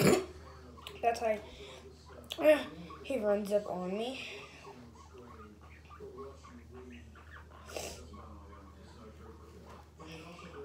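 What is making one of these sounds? A young girl talks animatedly close by.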